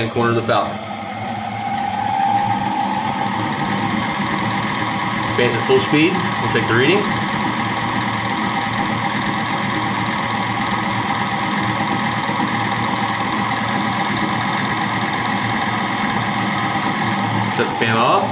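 A fan motor starts up and runs with a steady hum.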